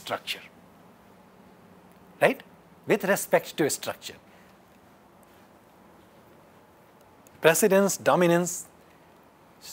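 A man lectures calmly in short bursts, close to a microphone.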